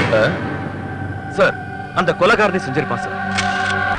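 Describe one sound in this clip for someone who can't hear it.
A man speaks sternly nearby.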